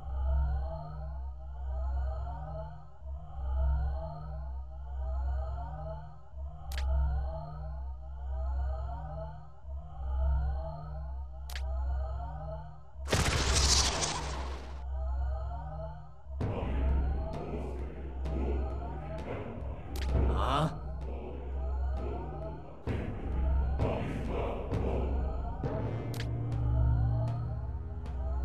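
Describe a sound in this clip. Looping electronic game music plays steadily.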